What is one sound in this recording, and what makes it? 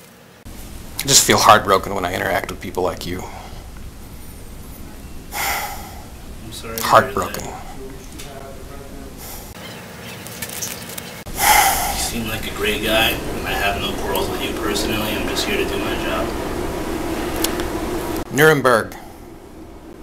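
A man speaks calmly and firmly nearby.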